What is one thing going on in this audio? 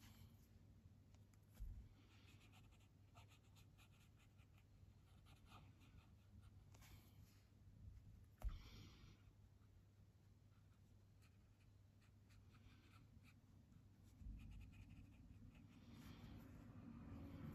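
A brush taps and swirls in a watercolour pan.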